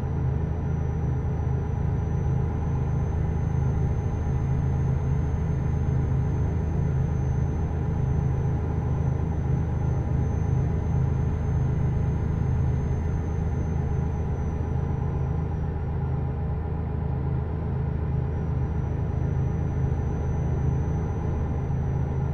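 A truck engine hums low and steady while driving.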